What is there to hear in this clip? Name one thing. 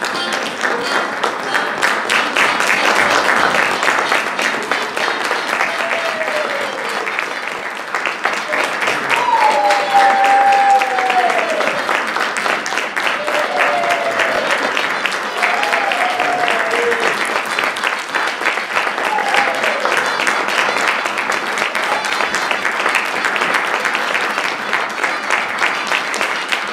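An audience claps loudly and steadily in a large hall.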